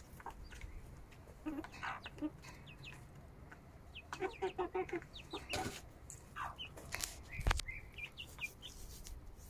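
Chickens peck at food in a metal dish.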